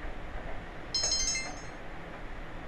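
A bright electronic chime rings out briefly.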